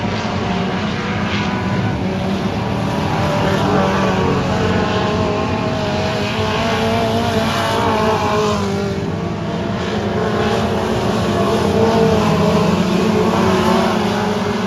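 Race car engines roar loudly around a dirt track.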